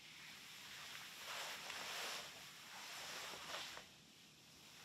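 A padded quilt crinkles and rustles as it is touched.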